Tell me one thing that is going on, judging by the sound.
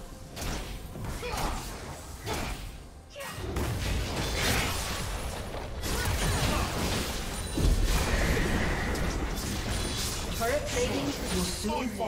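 Spell effects whoosh and crackle in a fantasy game battle.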